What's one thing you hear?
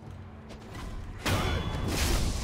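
Blades clash loudly in a fight.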